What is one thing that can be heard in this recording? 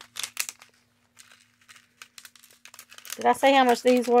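Plastic bags crinkle and rustle in hands close by.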